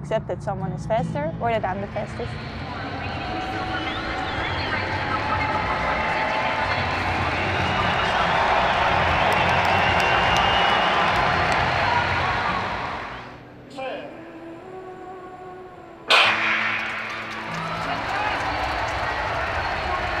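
A large stadium crowd roars and cheers, echoing widely.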